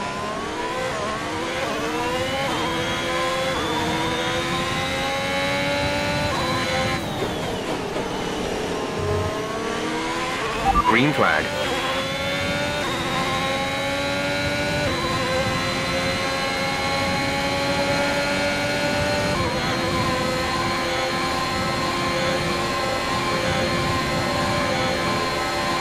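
A racing car engine screams and rises in pitch as the car speeds up through the gears.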